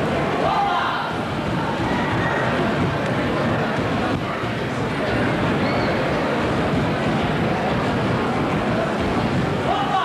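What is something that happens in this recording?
Folk dancers stamp and shuffle their feet on a wooden stage.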